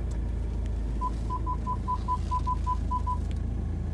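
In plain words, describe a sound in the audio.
A car's parking sensor beeps quickly and repeatedly.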